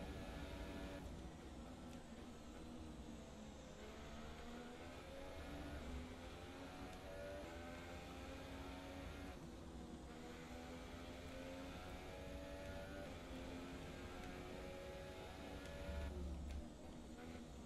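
A racing car engine screams at high revs, rising and falling as it shifts gears.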